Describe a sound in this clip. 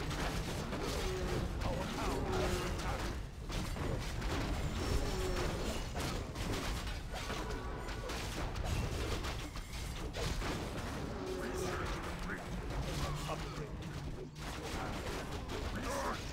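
Weapons clash and strike over and over in a fast battle.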